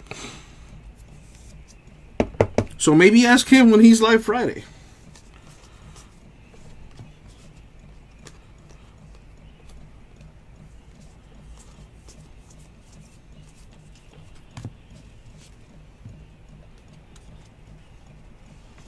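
Trading cards shuffle and flick softly between fingers.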